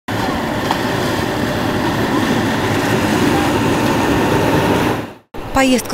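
Water churns and splashes against the hull of a passing boat.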